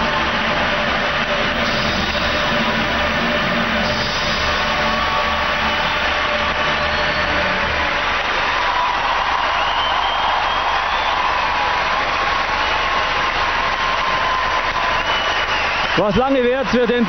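A large crowd cheers and applauds loudly in a big echoing arena.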